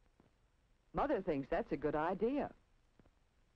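A woman speaks softly and warmly.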